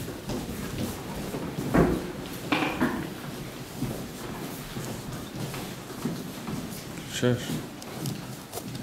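A small crowd of men and women murmur and talk quietly nearby.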